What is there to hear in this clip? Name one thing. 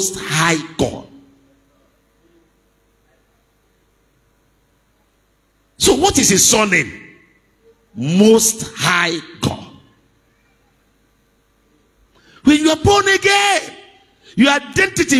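A man preaches with animation into a microphone, heard through loudspeakers, in bursts with pauses.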